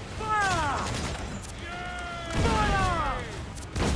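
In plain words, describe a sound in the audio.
Cannonballs splash into the sea.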